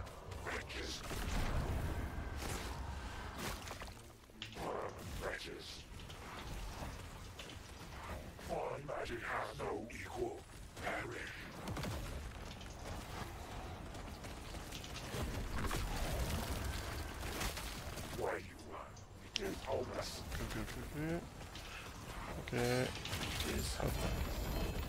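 Game spells crackle and boom in a loud fight.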